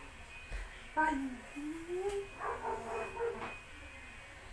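A boy vocalises playfully close by.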